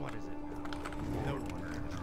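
Game battle effects clash and crackle.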